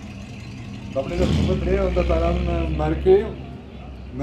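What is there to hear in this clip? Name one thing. A car engine revs briefly as a car pulls away.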